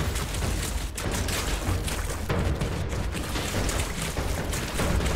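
Footsteps run through grass and shallow water.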